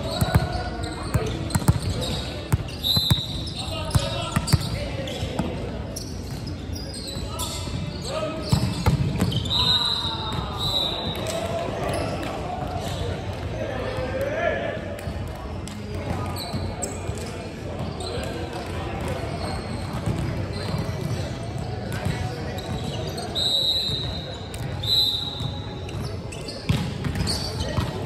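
A volleyball is struck hard by hands, echoing in a large hall.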